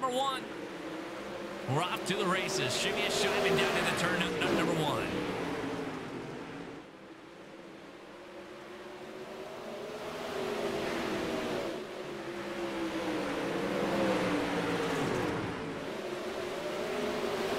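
Several race car engines roar and rev as they speed past.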